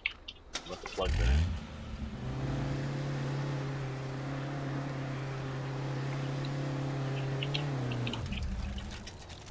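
A car engine starts with a roar and hums steadily while driving, then cuts off.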